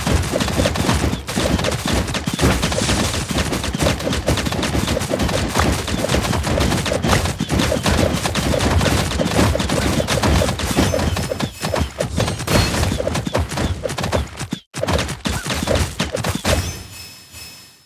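Game weapons fire in rapid bursts with small explosions.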